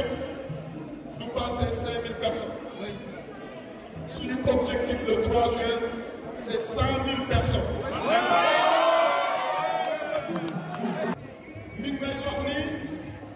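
A crowd of men murmurs and calls out around the speaker.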